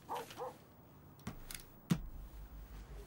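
A pistol is set down on a car dashboard with a hard knock.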